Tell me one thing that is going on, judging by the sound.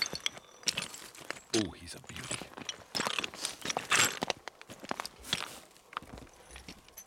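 A carcass drags over rough, stony ground with scraping and rustling.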